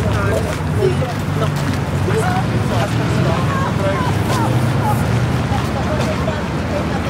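A woman and a young girl talk nearby as they walk past.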